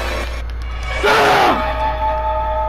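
A clown lets out a sudden, shrill screech up close.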